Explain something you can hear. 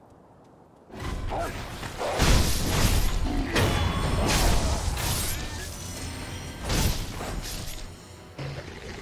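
Sword blades clash and slash.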